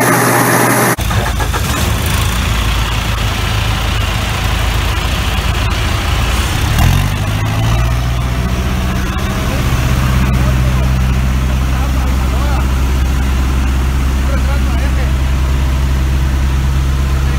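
A heavy machine engine hums and rumbles steadily.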